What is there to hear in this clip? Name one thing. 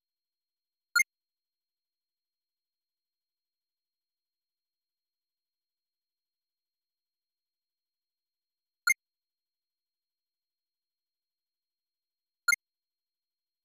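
A short electronic blip sounds as a game's dialogue box pops up or closes.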